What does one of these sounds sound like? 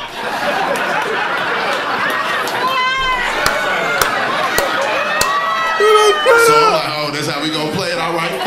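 A man laughs loudly and heartily close to a microphone.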